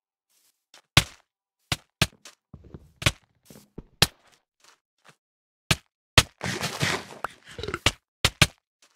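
A sword strikes a blocky figure with sharp hits.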